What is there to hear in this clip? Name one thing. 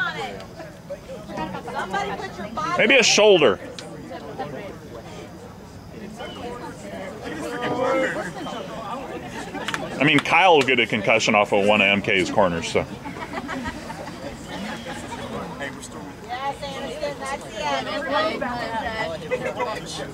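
Spectators nearby talk and chat.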